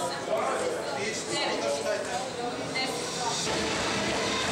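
Several women talk and chatter nearby.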